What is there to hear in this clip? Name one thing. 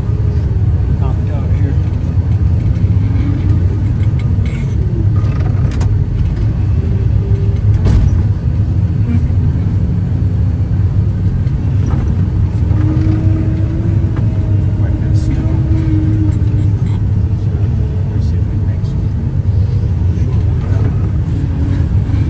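A heavy engine rumbles steadily and loudly.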